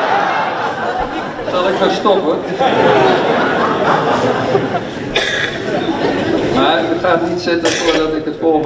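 People in a room chatter quietly.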